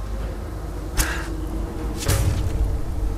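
A bowstring twangs sharply as an arrow is shot.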